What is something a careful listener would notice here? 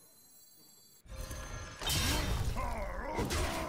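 A game's spell effect bursts with a magical whoosh.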